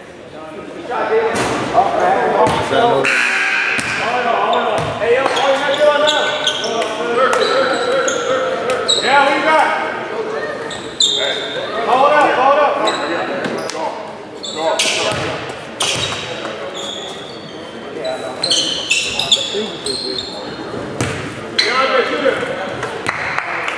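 Spectators and players shout and call out in an echoing gym.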